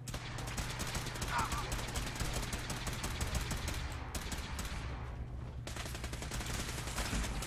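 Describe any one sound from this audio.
A laser rifle fires rapid zapping shots.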